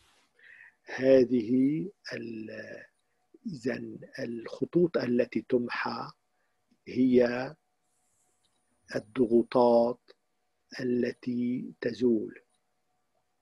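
An elderly man speaks with animation close to the microphone.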